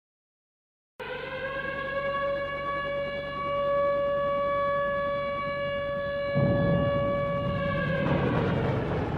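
A young child hums a long, steady high note close by.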